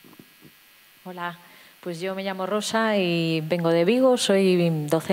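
A woman speaks calmly through a microphone in a large echoing hall.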